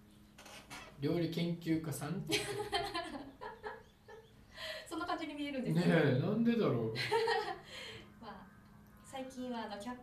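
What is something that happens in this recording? A woman laughs cheerfully close to a microphone.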